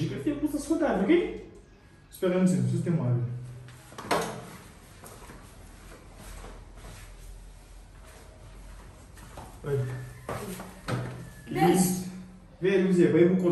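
A boy answers in a young voice close by.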